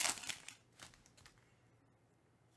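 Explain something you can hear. A foil wrapper crinkles as it is torn open.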